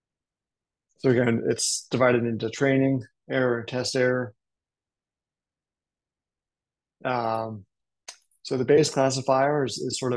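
A man talks calmly and explains, close to a microphone, in short phrases with pauses.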